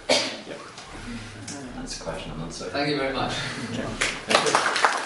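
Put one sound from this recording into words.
A man speaks calmly to an audience.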